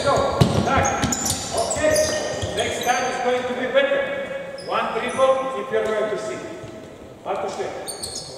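Young men shout loudly to each other across the court.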